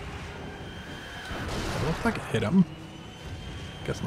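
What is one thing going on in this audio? A missile whooshes through the air.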